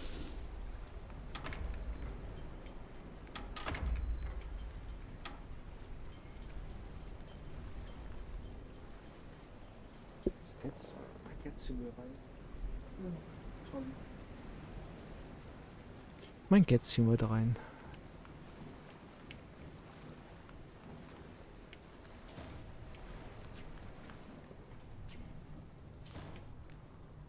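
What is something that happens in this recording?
Water laps gently against a boat hull.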